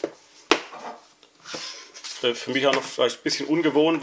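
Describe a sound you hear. A cardboard box lid slides off with a soft scrape.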